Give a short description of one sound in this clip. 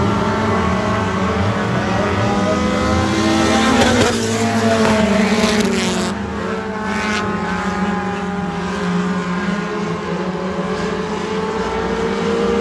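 Several dirt track race cars roar at full throttle around a dirt oval.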